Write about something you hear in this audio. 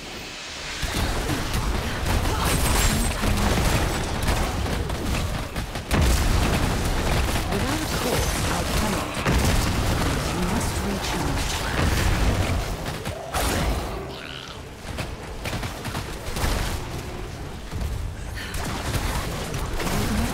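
Game spell blasts and weapon hits crash and boom in rapid bursts.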